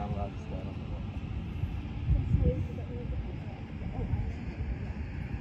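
Wind gusts and rumbles across the microphone outdoors.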